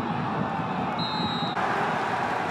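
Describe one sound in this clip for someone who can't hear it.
A referee blows a short, sharp whistle.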